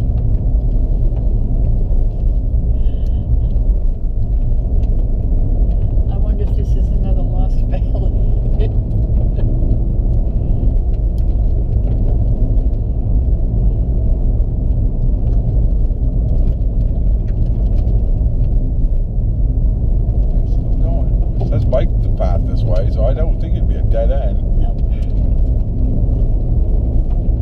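A car engine drones steadily, heard from inside the car.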